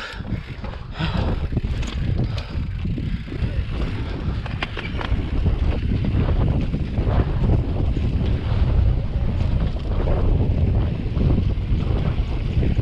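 A bicycle rattles and clanks over bumps.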